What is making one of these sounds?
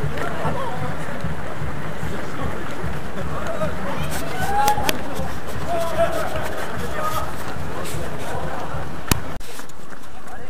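A crowd of adults chatters and cheers nearby.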